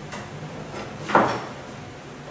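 A knife clatters as it is picked up from a wooden cutting board.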